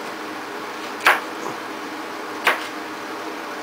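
A knife knocks against a cutting board.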